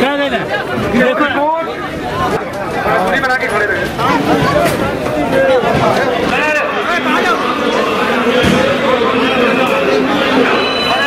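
A crowd of men and women chatter at once.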